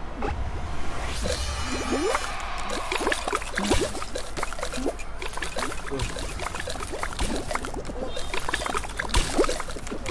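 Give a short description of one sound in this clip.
Ice cracks and shatters again and again.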